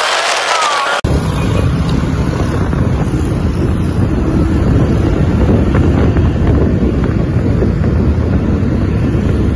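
Tyres and engines rumble steadily on a busy road, heard from inside a moving car.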